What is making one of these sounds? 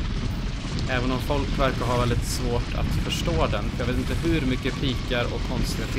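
A man talks calmly and close, through a microphone.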